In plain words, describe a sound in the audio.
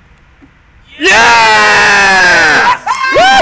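A young man shouts and cheers loudly.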